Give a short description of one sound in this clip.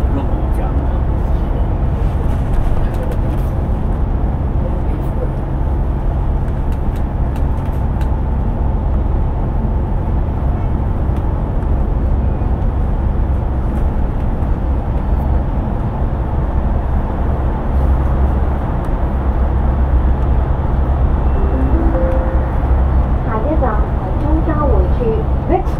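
Traffic roars past on a busy road.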